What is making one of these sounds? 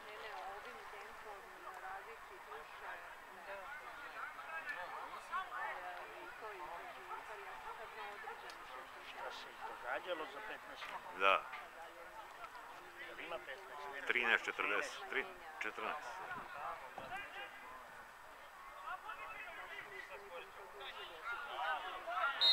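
Distant players shout and call out across an open field.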